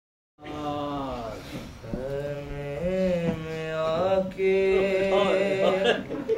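A young man chants a slow, mournful lament close by.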